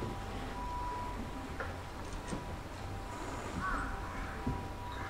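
A bamboo flute plays a long, high, steady note.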